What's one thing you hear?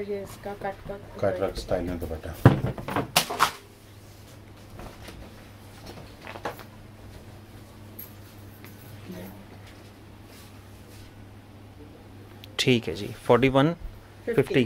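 Cloth rustles.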